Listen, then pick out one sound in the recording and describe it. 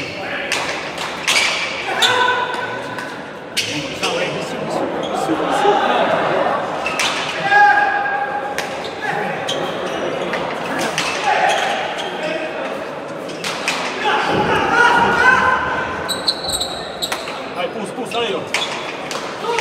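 Shoes squeak on a hard floor.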